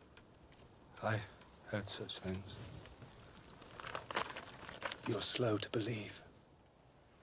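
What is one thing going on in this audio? A second man answers in a low, calm voice.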